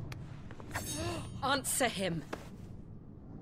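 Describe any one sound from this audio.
A woman shouts a sharp command.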